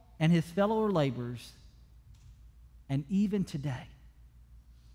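A man speaks with emphasis through a microphone in a room with a slight echo.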